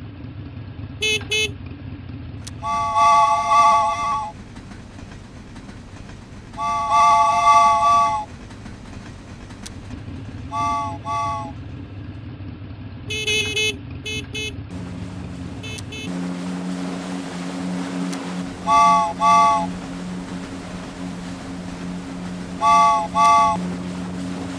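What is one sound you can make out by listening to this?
A toy-like game vehicle honks in short electronic bursts.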